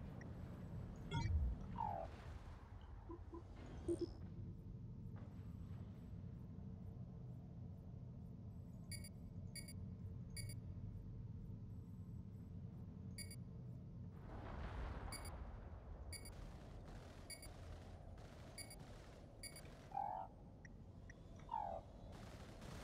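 Short electronic chimes sound as a menu opens and closes.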